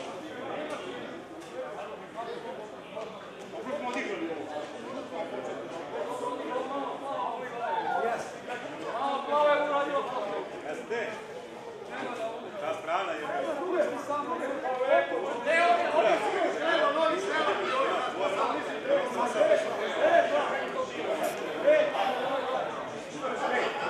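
Several men talk and chatter nearby outdoors.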